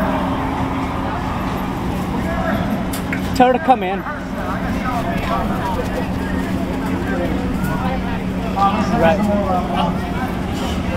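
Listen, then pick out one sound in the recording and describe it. Young men talk and shout excitedly close by.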